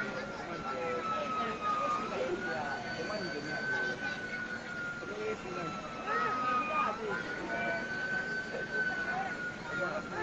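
A fire truck siren wails steadily close by.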